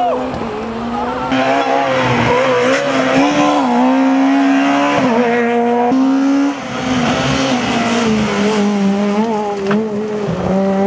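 A rally car engine roars loudly, revving hard as the car speeds past.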